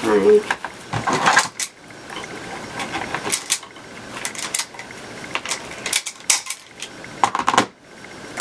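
A plastic tool clatters as it is picked up and set down.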